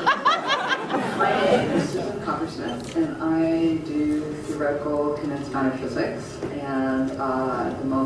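A woman speaks calmly and cheerfully, close by.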